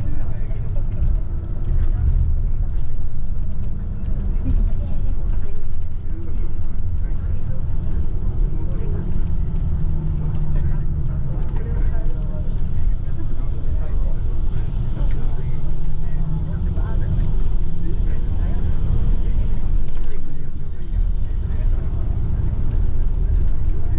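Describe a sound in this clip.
A bus engine rumbles steadily from inside the bus as it drives.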